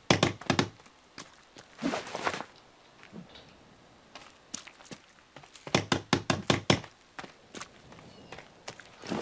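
Quick footsteps thud on grassy ground.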